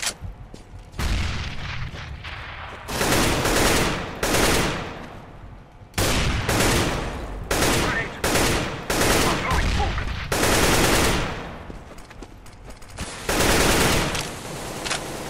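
A rifle fires in rapid bursts of loud shots.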